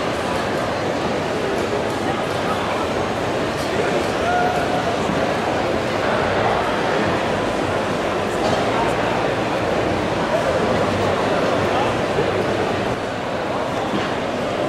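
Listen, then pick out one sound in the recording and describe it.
A large crowd chatters throughout in a big echoing hall.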